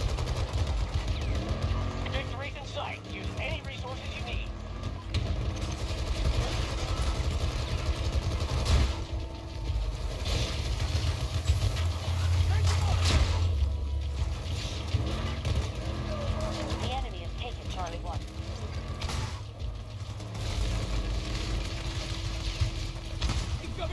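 An armoured vehicle's engine rumbles low and steadily.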